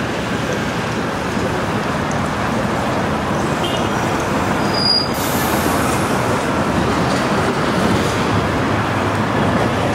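Traffic rumbles steadily along a nearby road outdoors.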